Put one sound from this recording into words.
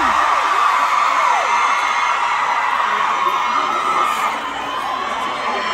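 A large crowd cheers and screams loudly in a big echoing hall.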